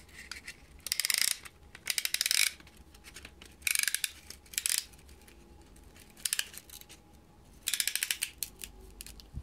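A metal ratchet clicks in quick, rattling bursts.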